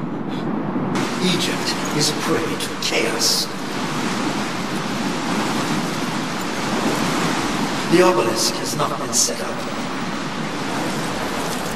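A strong wind roars through a sandstorm.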